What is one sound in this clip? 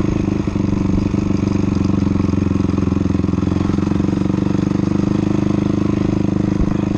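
A dirt bike engine revs loudly and steadily close by.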